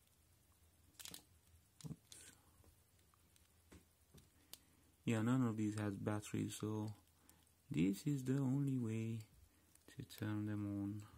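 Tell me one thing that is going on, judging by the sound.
Small plastic parts of a phone click and tap as it is handled.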